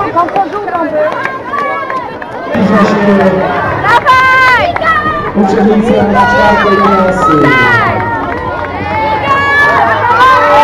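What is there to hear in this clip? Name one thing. A crowd of children cheers and shouts loudly outdoors.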